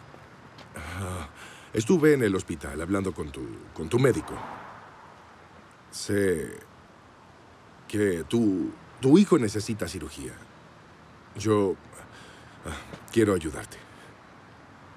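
A man speaks quietly and seriously up close.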